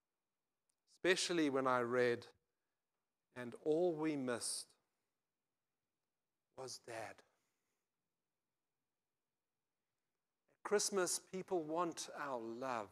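An older man speaks slowly and thoughtfully into a microphone, with pauses.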